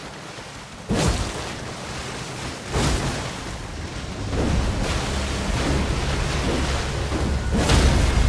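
Heavy blows strike and clang in a fight.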